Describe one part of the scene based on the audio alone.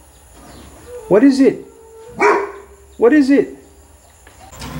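A dog barks sharply.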